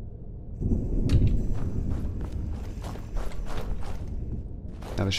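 Footsteps tread on a rough stone floor.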